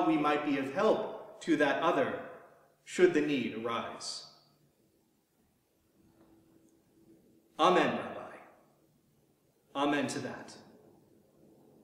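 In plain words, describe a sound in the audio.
A man speaks calmly and slowly, with pauses, in an echoing hall.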